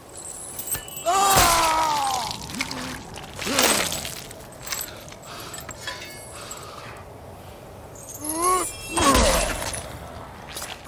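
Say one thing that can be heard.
A blade stabs and tears into flesh with wet crunches.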